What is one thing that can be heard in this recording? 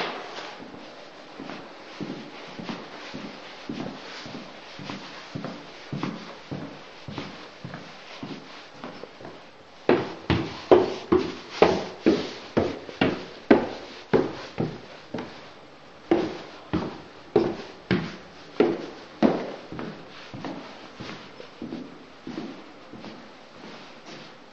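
Footsteps thud steadily across a hard floor, growing louder and heavier partway through.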